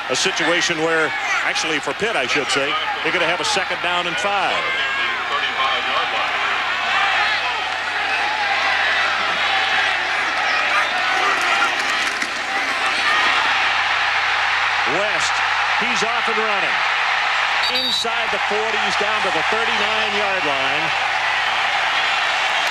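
A large stadium crowd roars steadily, swelling loudly during the play.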